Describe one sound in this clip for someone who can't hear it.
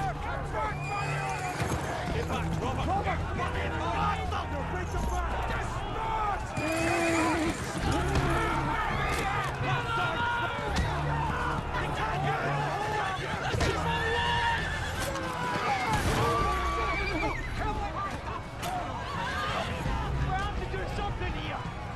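A crowd shouts and screams in a chaotic brawl.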